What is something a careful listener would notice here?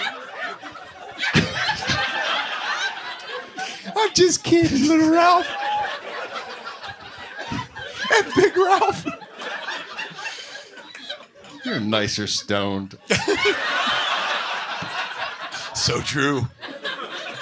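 A middle-aged man laughs and talks through a microphone.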